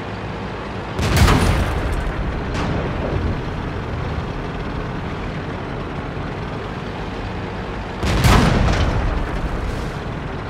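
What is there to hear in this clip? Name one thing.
A tank cannon fires with a loud boom that rolls away.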